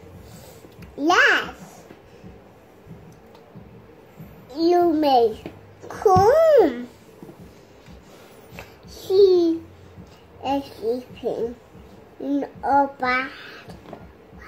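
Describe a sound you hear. A toddler speaks softly and in a high voice, close by, in short bursts.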